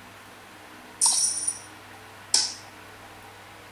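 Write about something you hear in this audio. A mobile game plays short, bright sound effects from a phone speaker.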